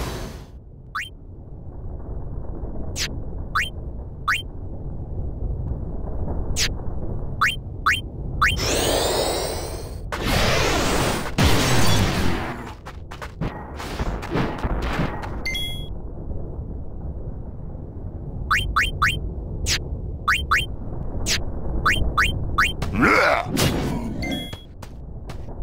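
Menu cursor blips click sharply, again and again.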